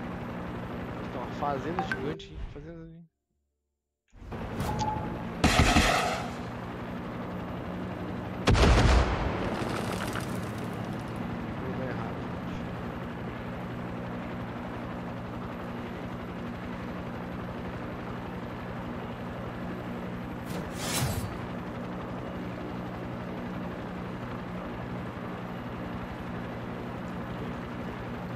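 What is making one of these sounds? A helicopter engine drones and its rotor thumps steadily.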